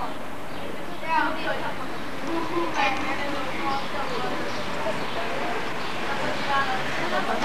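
Teenage girls talk close by.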